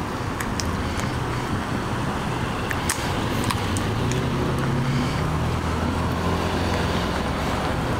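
A pickup truck rumbles past.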